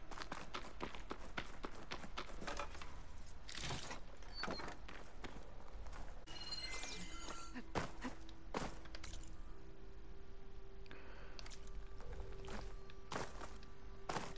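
Footsteps crunch on snow and rock.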